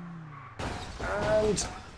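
Tyres screech sharply.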